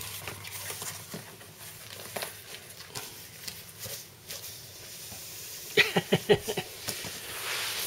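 Cardboard flaps rustle and scrape as a boy opens a box.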